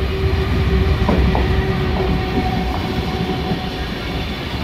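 A locomotive's engine hums loudly as it passes.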